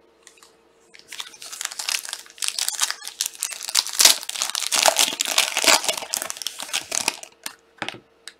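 A foil wrapper crinkles and tears as hands open a pack of cards.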